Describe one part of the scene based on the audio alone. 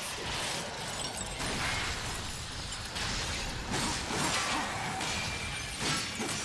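Ice shatters and cracks.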